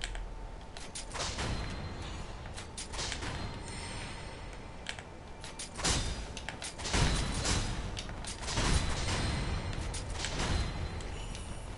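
Swords clash with sharp metallic rings.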